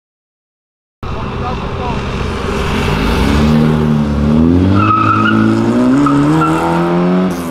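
A car engine rumbles and revs up as the car pulls away.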